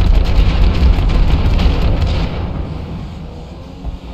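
Tyres roar loudly on the road, then quieten.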